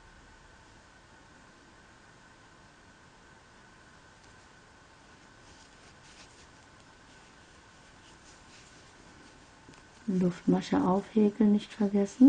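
A crochet hook softly pulls and rustles yarn.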